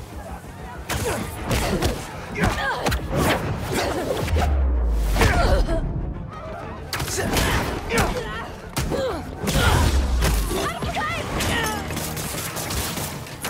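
Web lines zip and snap through the air.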